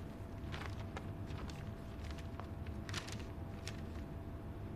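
Sheets of paper rustle softly.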